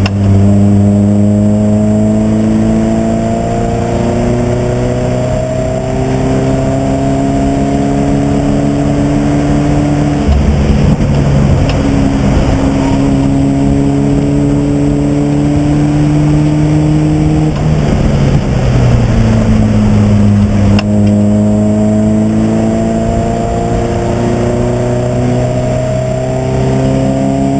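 A racing car engine roars loudly up close, its pitch climbing steadily and dropping sharply at each gear change.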